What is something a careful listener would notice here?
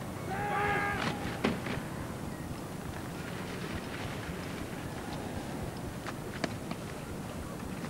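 Rifles clack sharply in unison as a rank of soldiers drills.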